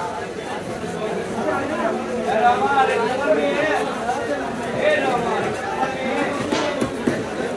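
A large knife cuts through a large fish against a wooden block.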